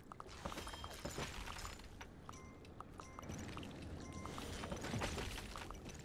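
Coins chime as they are collected.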